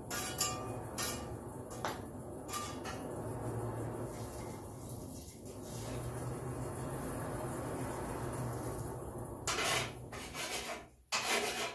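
Metal tongs scrape and clink in burning coals.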